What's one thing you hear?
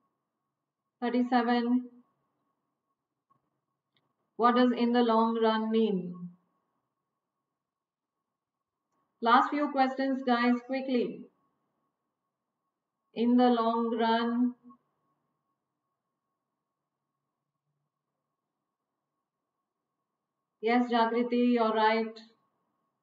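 A middle-aged woman speaks calmly and clearly into a close microphone, in short phrases with long pauses.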